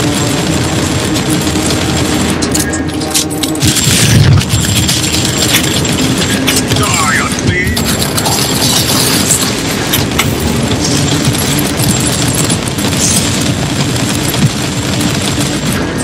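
Gunfire and explosions crackle and boom in a fierce battle.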